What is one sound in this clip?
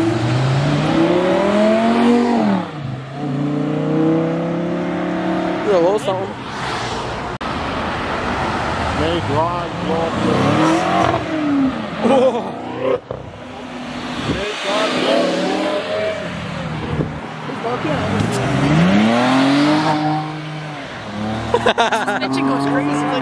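Tyres hiss on the road as traffic passes close by.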